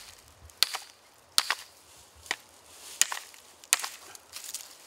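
A hammer strikes a stone with sharp knocks.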